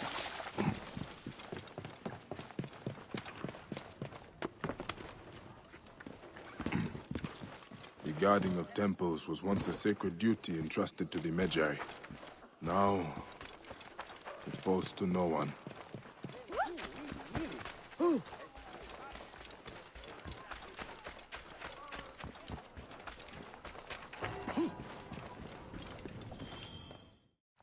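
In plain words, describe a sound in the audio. Footsteps run quickly over dirt and wooden boards.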